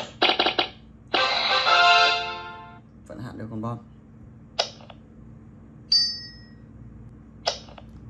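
A mobile game plays bright jingles and reward chimes.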